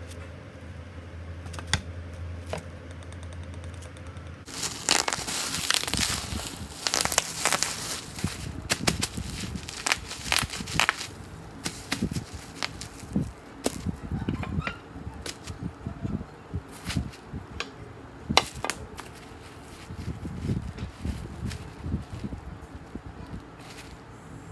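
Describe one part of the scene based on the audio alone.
Wooden boards knock together.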